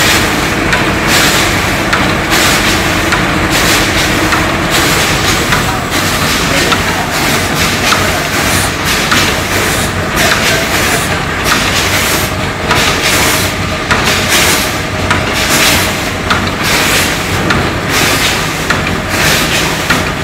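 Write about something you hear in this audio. Mechanical parts click and clack rapidly.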